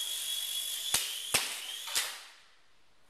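A small toy helicopter knocks against the floor a few times.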